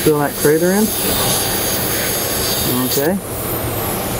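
A welding arc hisses and crackles steadily.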